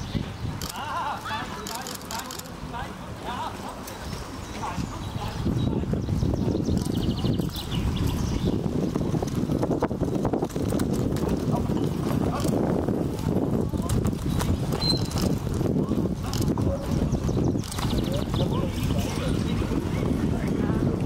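Horse hooves thud on the ground.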